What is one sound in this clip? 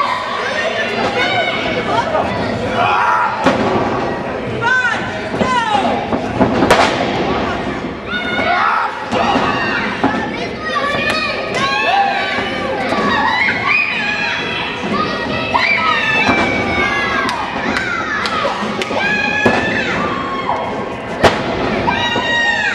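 Heavy bodies thud and slap against each other in a wrestling match.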